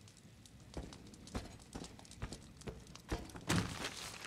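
A fire crackles in a hearth.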